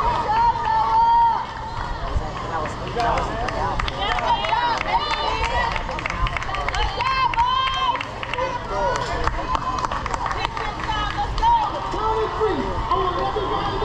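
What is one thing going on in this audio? Children and young players shout and cheer across an open field.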